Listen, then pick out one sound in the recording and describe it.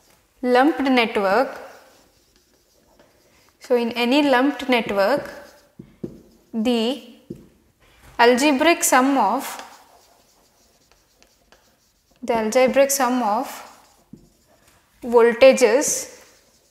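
A young woman explains calmly in short phrases, close to a microphone.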